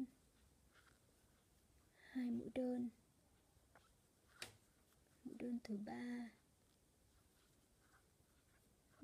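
A crochet hook softly rubs and pulls through yarn.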